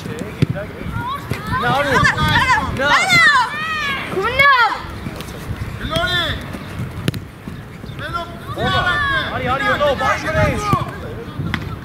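Children and adults shout excitedly outdoors.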